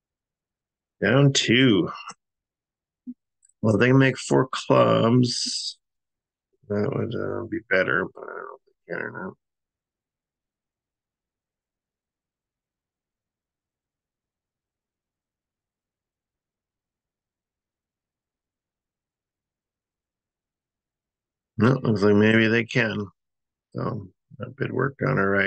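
A man talks calmly and close to a microphone, in short bursts.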